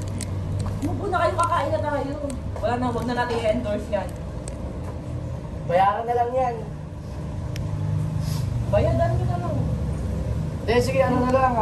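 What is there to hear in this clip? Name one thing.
Several young people chat nearby.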